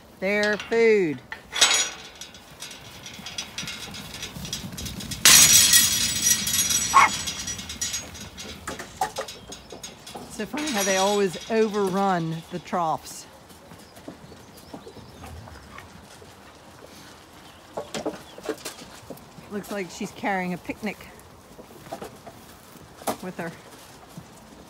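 Sheep bleat loudly nearby, on and off.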